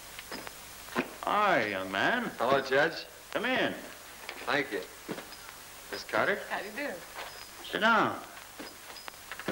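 A man speaks loudly and with animation.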